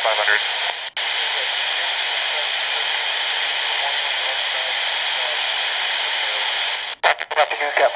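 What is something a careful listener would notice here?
Static hisses steadily from a handheld radio, then cuts off.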